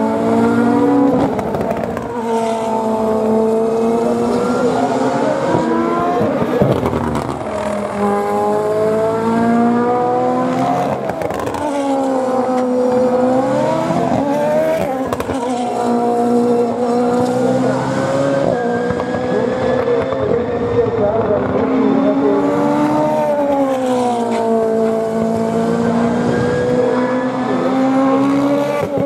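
GT racing cars accelerate away through a bend one after another, their engines roaring and rising in pitch as they shift up through the gears.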